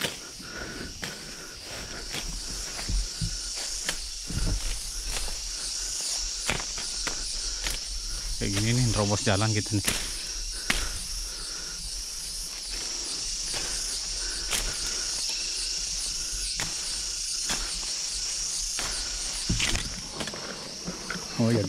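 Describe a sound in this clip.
Leaves and stems rustle and brush close by as someone pushes through dense undergrowth.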